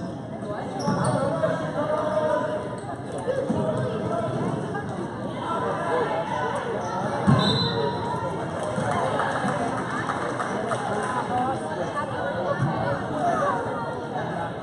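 Basketball shoes squeak on a gym floor.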